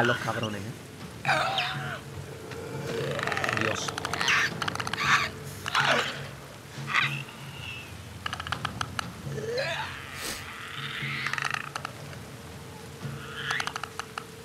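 A man talks quietly into a close microphone.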